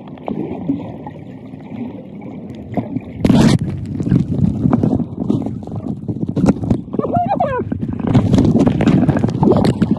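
Air bubbles from a snorkel burble close by.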